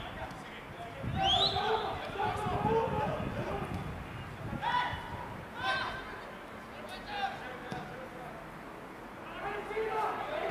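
Players shout to each other across an open outdoor pitch.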